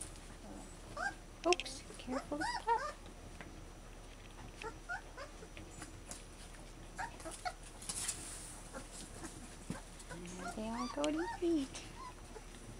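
Newborn puppies whimper and squeal in high thin cries.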